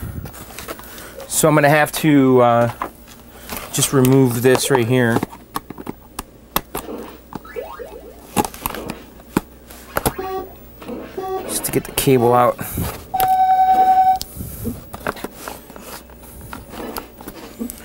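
A plastic casing clatters and knocks as it is handled.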